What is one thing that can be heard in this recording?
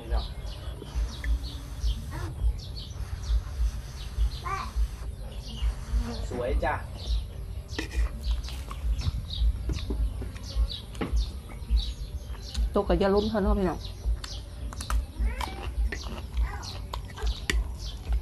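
A woman chews and slurps food noisily, close by.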